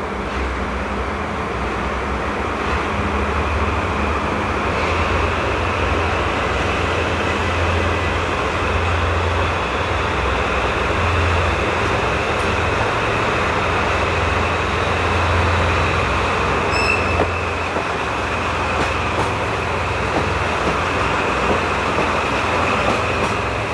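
A diesel locomotive engine rumbles steadily as a train approaches and passes close by.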